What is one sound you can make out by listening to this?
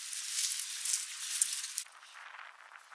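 Freshly cut green fodder rustles under a hand.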